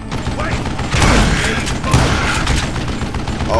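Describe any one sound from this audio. An explosion booms and debris crashes.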